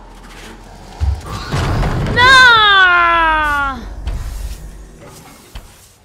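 An explosion booms and flames roar.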